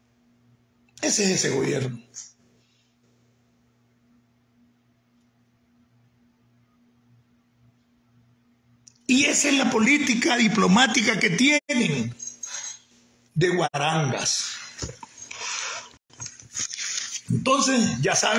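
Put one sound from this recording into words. An elderly man speaks with animation, close to a phone's microphone.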